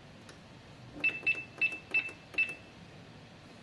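A kitchen appliance beeps several times as its buttons are pressed.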